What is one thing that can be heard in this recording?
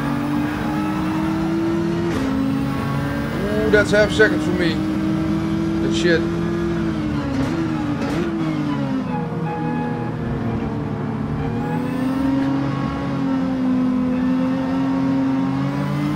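A racing car engine roars steadily, dropping in pitch as it slows and rising again as it speeds up.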